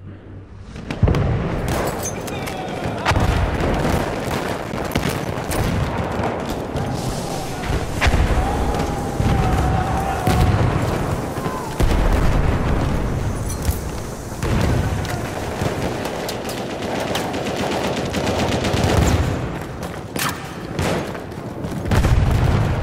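Explosions rumble and thud in the distance.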